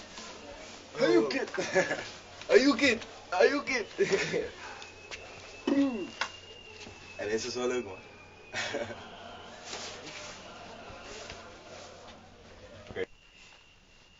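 Young men talk and laugh with animation, close by.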